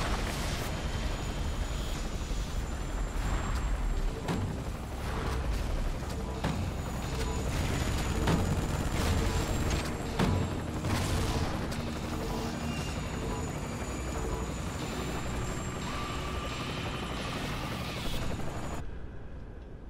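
A flamethrower roars steadily, then cuts off.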